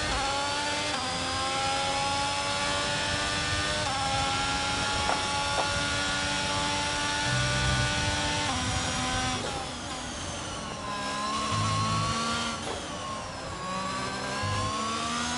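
A racing car engine screams at high revs, rising in pitch and dropping with each gear change.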